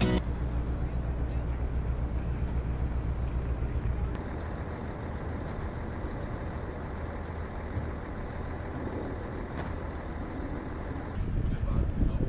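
Wind blusters loudly against the microphone outdoors.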